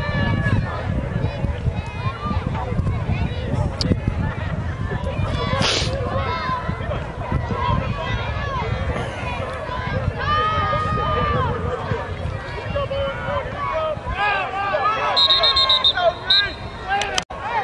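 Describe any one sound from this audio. A crowd of spectators chatters and cheers outdoors nearby.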